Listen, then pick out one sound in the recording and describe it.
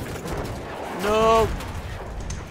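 A man exclaims loudly into a microphone.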